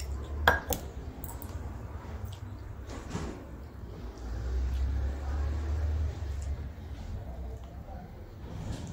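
Fingers squelch and mix soft rice and curry on metal plates.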